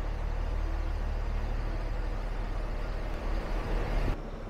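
A bus engine idles close by.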